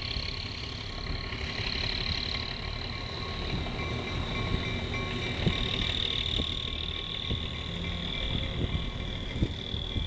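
A diesel locomotive rolls slowly forward on the rails.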